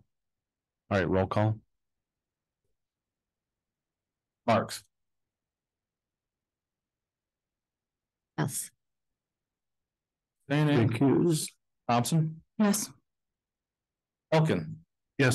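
A man speaks calmly through a microphone in short bursts, with pauses between.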